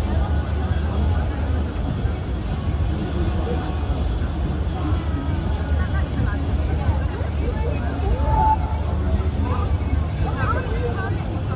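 A tugboat's engine rumbles low and steady close by.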